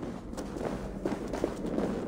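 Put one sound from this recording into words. A small fire crackles nearby.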